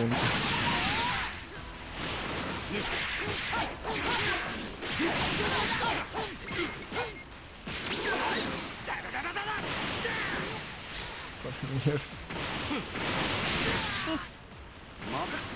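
Energy blasts whoosh and crackle in bursts.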